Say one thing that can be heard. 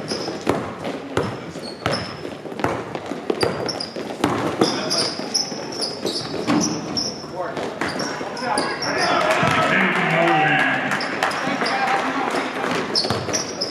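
Players and spectators shout and call out in a large echoing hall.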